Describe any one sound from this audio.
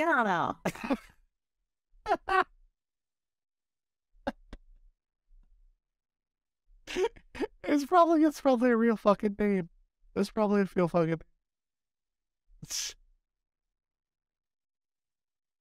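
A man laughs into a close microphone.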